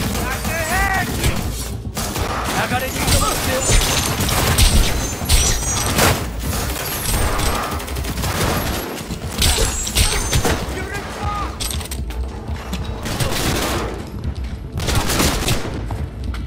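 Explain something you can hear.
A blade swishes through the air in quick slashes.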